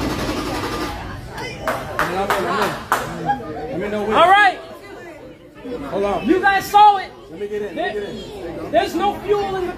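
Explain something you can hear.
A young man talks loudly and with animation close by.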